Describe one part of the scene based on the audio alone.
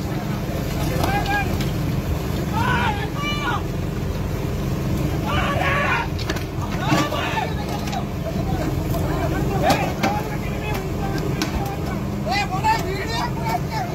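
Several men shout to one another outdoors.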